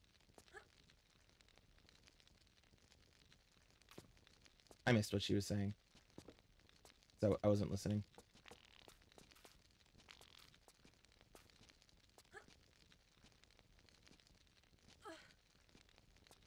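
A man speaks briefly and quietly into a microphone.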